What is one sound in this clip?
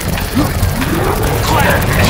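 Monsters growl and shriek nearby.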